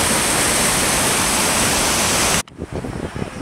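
A mountain river rushes loudly over rocks.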